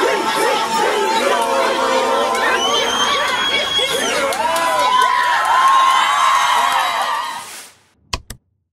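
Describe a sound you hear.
A crowd of men and women sings and chants loudly in an echoing hall.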